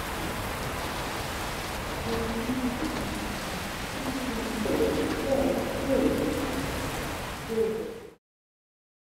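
Rain falls steadily and hisses.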